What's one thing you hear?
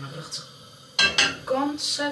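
A frying pan clanks onto a stove.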